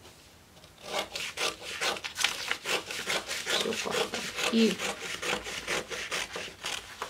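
Scissors snip through stiff paper in quick, repeated cuts.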